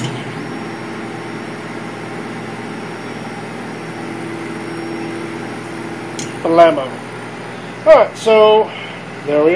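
A laser cutter hums steadily as its head glides back and forth.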